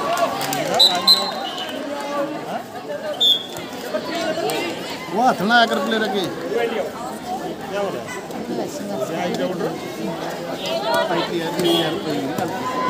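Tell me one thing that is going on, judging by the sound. A whistle blows in short sharp bursts.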